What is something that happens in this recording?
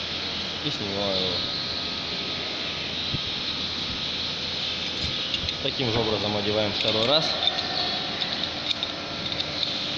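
Metal tools clink against a metal ring.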